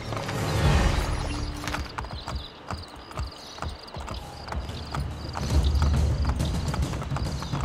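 Horse hooves clatter quickly on stone cobbles.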